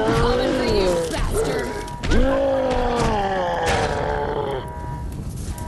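A monster lets out long, loud groaning roars.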